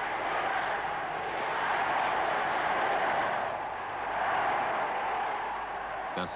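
A large crowd cheers and roars steadily outdoors.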